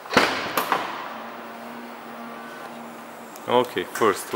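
A car's power tailgate hums steadily as it moves.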